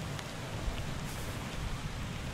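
A book's page turns with a papery swish.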